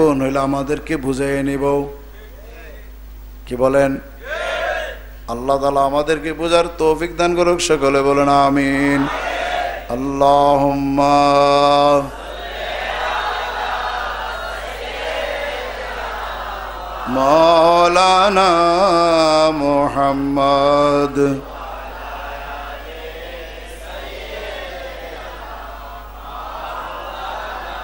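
A man chants and preaches in a melodic voice through a microphone and loudspeakers.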